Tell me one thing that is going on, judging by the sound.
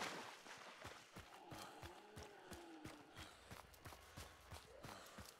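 Footsteps crunch steadily over dry leaves and dirt.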